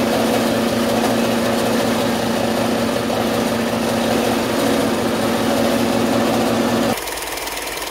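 A band saw motor hums steadily.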